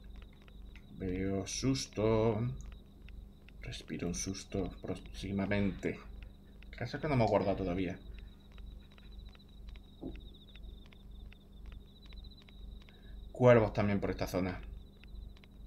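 A man talks calmly into a close microphone, pausing often.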